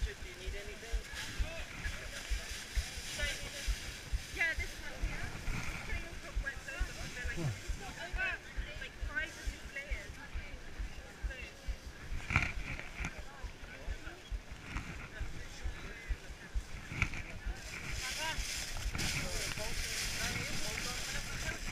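A foil rescue blanket crinkles and rustles up close.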